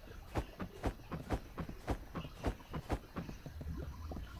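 Footsteps thud at a quick, even pace.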